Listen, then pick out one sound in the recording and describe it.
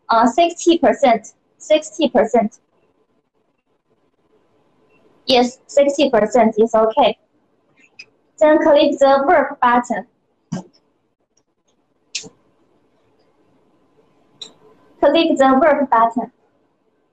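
A young woman speaks calmly and explains, close by.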